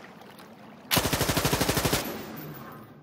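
An automatic rifle fires a short rapid burst with a ringing echo.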